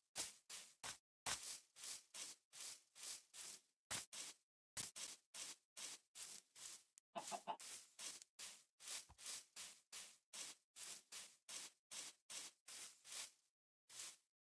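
Footsteps pad quickly and steadily over grass.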